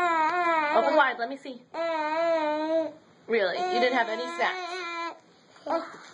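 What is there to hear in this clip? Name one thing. A young child cries and wails loudly close by.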